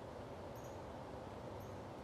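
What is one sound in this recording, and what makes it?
A small animal rustles through dry leaves.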